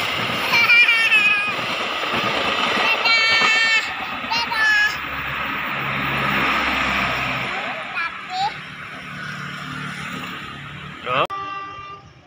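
A motorbike buzzes past on the road.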